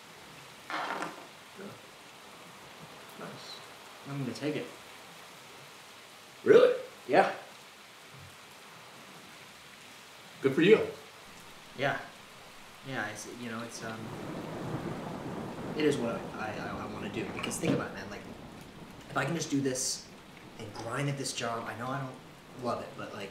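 Another young man speaks calmly, close by.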